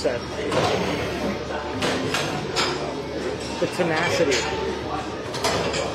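A young man grunts and strains with effort.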